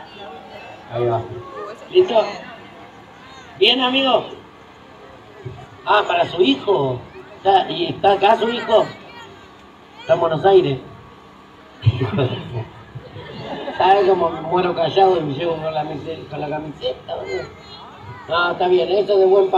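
A man speaks with animation through a loudspeaker microphone, echoing outdoors.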